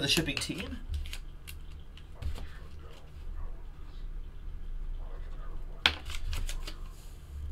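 Packaging rustles and clicks close by.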